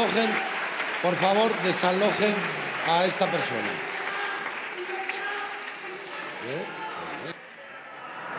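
A young man shouts loudly in a large echoing hall.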